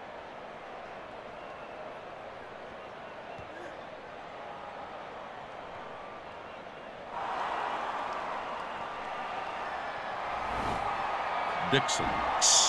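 A large stadium crowd murmurs steadily and swells into a loud roar.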